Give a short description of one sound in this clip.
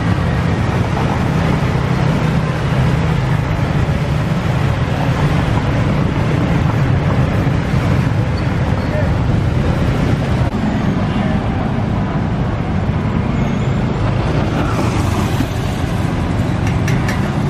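Cars drive past close by on a busy street.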